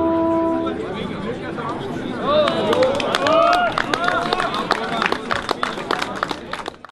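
A crowd of men and women talks and cheers loudly nearby.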